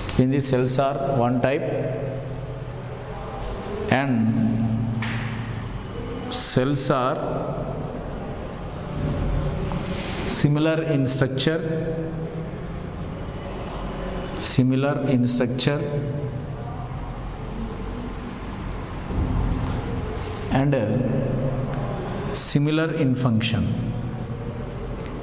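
A man speaks calmly and clearly into a close microphone, as if teaching.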